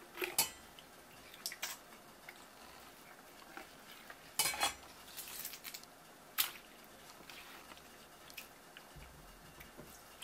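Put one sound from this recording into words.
Wet flesh squelches and slaps against a wooden board.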